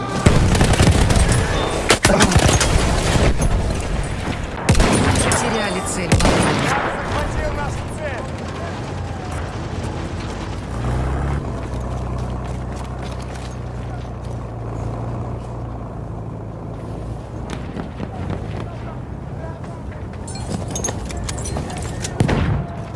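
A rifle fires sharp shots close by.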